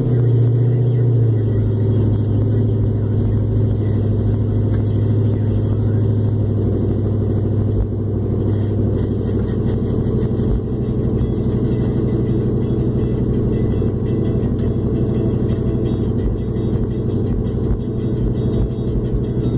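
Tyres rumble on a rough road.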